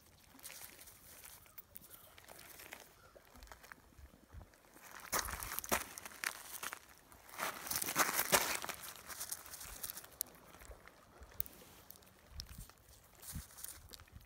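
Small pebbles click and clatter as a hand sifts through them.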